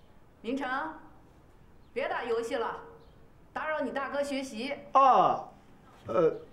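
A woman speaks sternly nearby.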